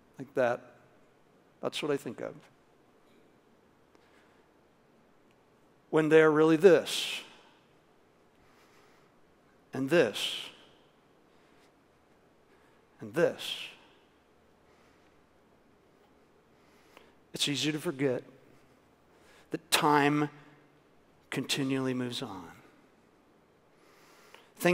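A middle-aged man speaks calmly into a headset microphone, pausing between phrases.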